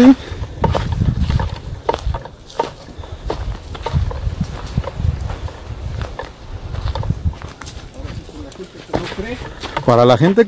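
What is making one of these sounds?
Twigs snap and rustle as a man pushes through bushes.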